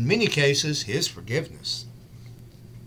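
A middle-aged man speaks briefly and calmly into a microphone close by.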